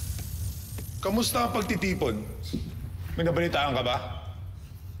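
A man speaks with dramatic emphasis, close by.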